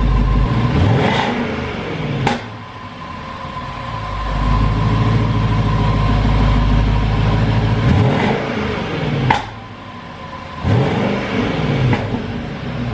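Exhaust pops and crackles sharply between revs.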